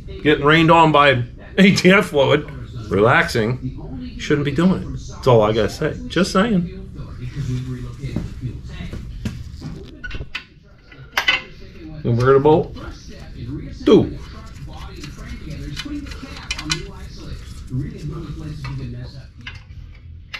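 A middle-aged man talks close by with animation.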